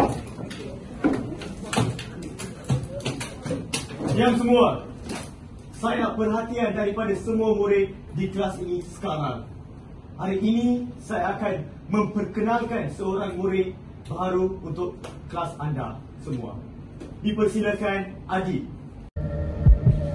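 A young man speaks aloud to a group in a room.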